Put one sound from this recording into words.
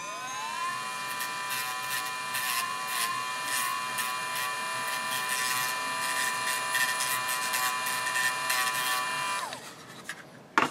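A high-speed rotary tool whines as it grinds a small metal part, then winds down.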